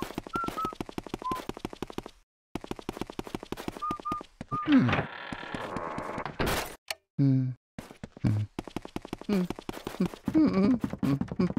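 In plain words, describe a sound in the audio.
Footsteps tap quickly and evenly on a wooden floor.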